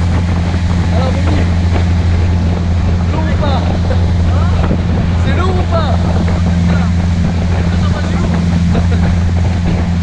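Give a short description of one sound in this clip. A young man talks loudly over the engine.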